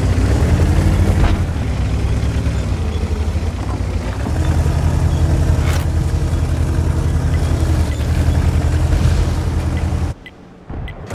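A heavy tank engine rumbles loudly and steadily.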